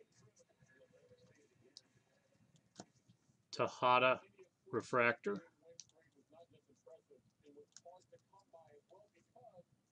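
Trading cards slide and flick against each other in hands.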